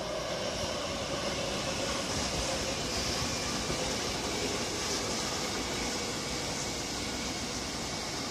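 A train rumbles past on the tracks with a steady roar.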